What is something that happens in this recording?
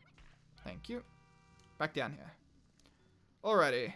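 A bright sparkling chime rings out.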